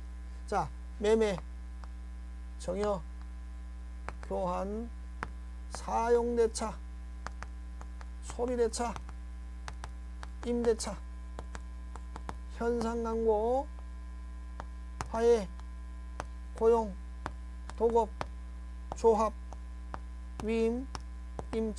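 A man speaks in short bursts, lecturing calmly through a microphone.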